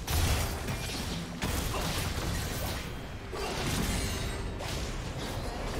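Game spell effects whoosh and crash during a fight.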